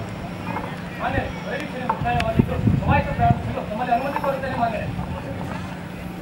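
A man speaks through a loudspeaker that echoes outdoors.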